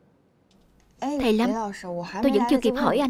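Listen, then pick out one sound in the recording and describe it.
A young woman speaks sharply and close by.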